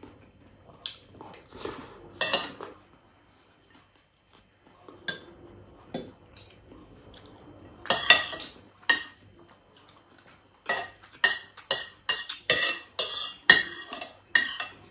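A man chews food loudly and smacks his lips close up.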